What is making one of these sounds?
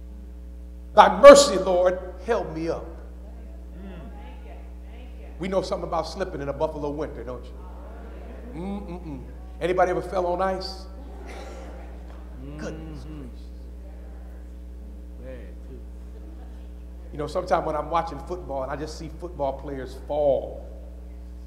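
A man preaches through a microphone in a large hall, speaking in bursts with long pauses.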